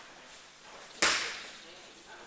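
A loud thud sounds as a body or feet strike a mat.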